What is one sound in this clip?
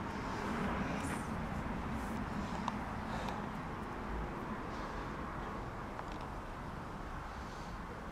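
A puppy's paws scuff and shuffle on loose dirt.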